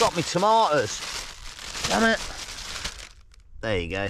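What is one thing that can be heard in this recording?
A plastic bag rustles close by.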